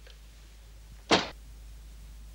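A telephone handset clatters down onto its cradle.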